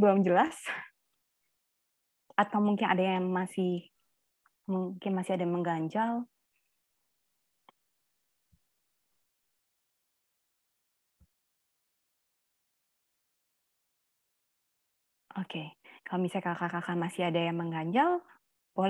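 A woman speaks calmly through an online call, in short phrases with pauses.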